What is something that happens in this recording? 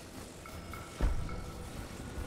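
A heavy stone block thuds down.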